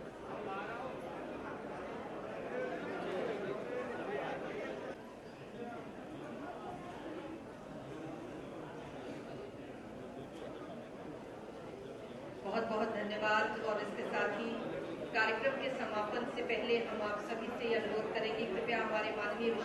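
A crowd of people chatters and murmurs in a large hall.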